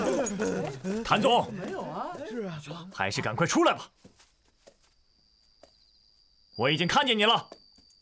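A young man calls out loudly and firmly.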